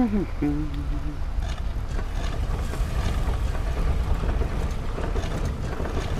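Heavy stone rings grind and clunk as they turn.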